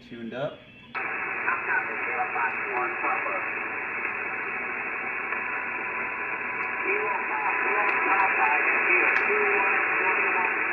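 A radio hisses loudly with static.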